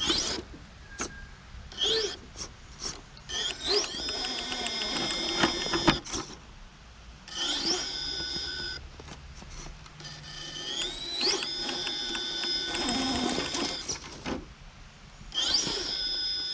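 A small electric motor whines in bursts, rising in pitch as a toy truck climbs.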